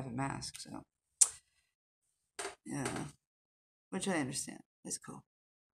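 A middle-aged woman talks calmly and close to a microphone, in short bursts.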